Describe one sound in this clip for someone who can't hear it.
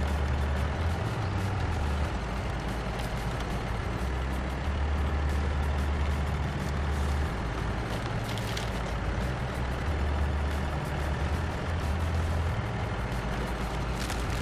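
A truck engine rumbles steadily, labouring as it drives.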